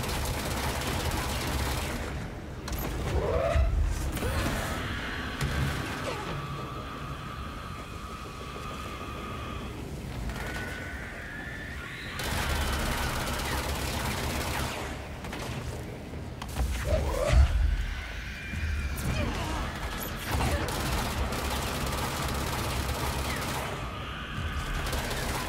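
Gunshots ring out in rapid bursts with booming blasts.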